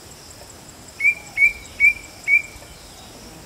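A small bird calls with four short, sharp notes.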